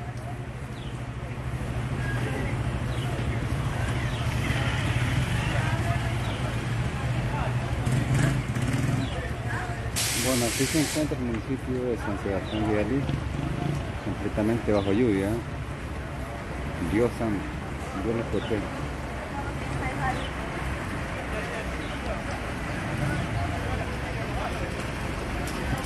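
Rain patters on the wet street.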